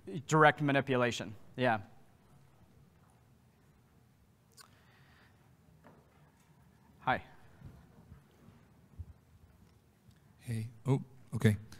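A man speaks through a microphone in a large hall, pausing between phrases.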